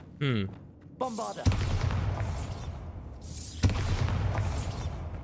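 A magic spell blasts with a loud whooshing roar.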